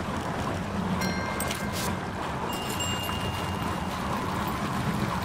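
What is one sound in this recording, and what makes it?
A short chime sounds as an item is discovered.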